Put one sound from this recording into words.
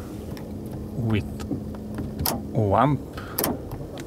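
A light switch clicks.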